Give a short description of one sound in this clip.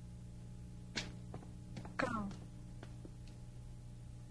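Footsteps thud on a stone floor.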